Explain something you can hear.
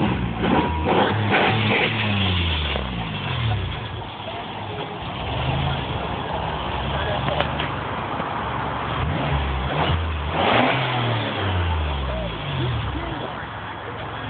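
Car tyres screech as they spin on pavement.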